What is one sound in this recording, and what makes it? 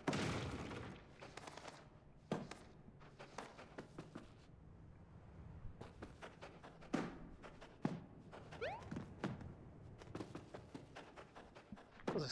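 Light cartoon footsteps patter quickly.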